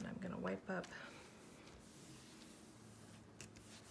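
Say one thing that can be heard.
Tissue paper rustles as it is rubbed against paper.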